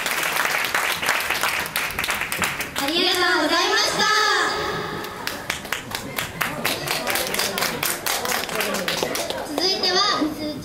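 An audience claps along in a steady rhythm.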